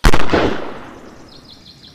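A cannon shot booms and fades.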